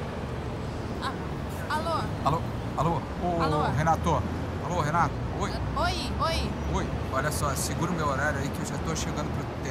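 A young man talks into a phone up close.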